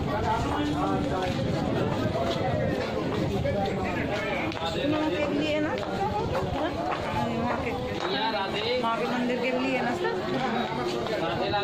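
A woman speaks close by with animation.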